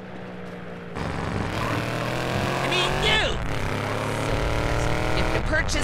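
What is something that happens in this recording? A buggy engine starts and revs loudly.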